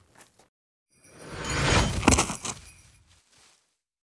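A door swings open with a whoosh.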